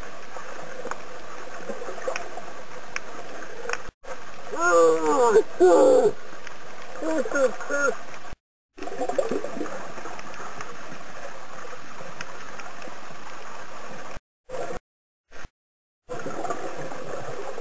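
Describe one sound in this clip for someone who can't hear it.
A steady muffled underwater hiss with faint crackling surrounds the listener.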